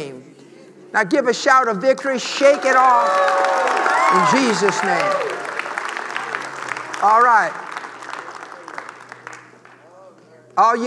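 A crowd cheers and calls out.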